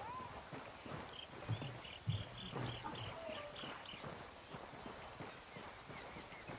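Footsteps squelch through mud.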